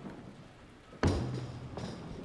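A bowling ball thuds down onto a lane.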